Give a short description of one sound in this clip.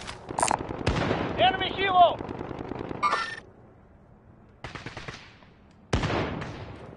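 Rifle shots crack sharply and echo.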